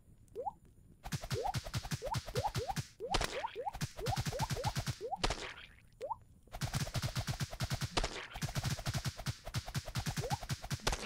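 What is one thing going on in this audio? Quick soft hit sounds tap rapidly in a game.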